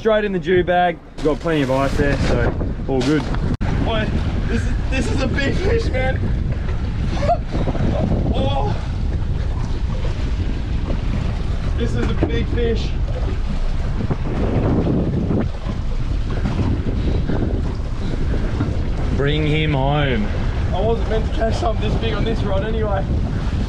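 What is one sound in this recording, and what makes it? Men talk with animation close by, outdoors.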